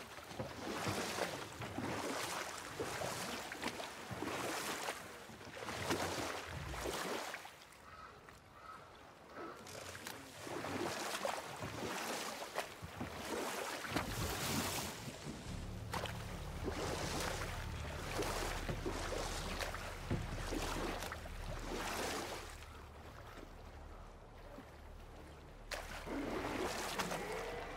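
Oars splash rhythmically in water as a boat is rowed.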